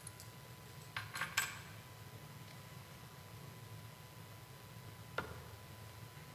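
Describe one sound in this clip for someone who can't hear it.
Small objects clink and knock.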